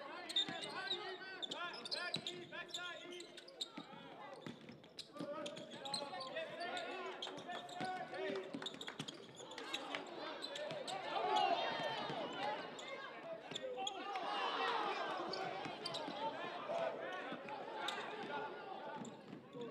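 A basketball bounces on the floor as it is dribbled.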